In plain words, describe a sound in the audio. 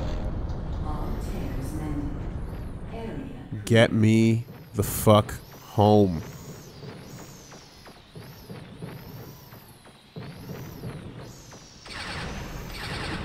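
A hoverboard hums and whooshes along.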